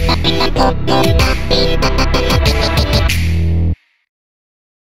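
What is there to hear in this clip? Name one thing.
Upbeat electronic dance music plays loudly through speakers, then cuts off abruptly.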